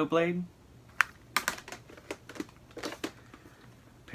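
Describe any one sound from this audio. A plastic case clicks and rattles as it is handled.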